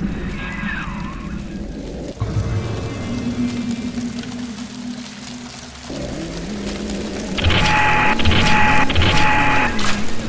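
A fire crackles and roars in a fireplace.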